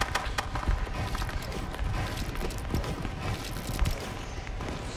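Wooden building pieces snap into place with quick knocks.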